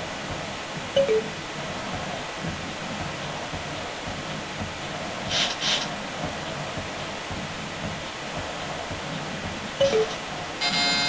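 A video game plays quick two-note electronic beeps.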